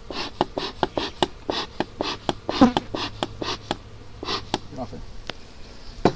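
Wooden hive frames knock and clatter as they are handled.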